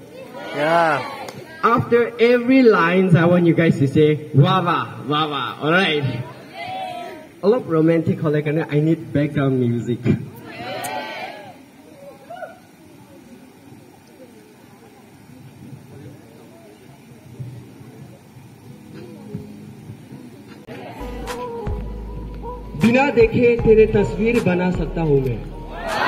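A young man sings into a microphone, heard through loudspeakers outdoors.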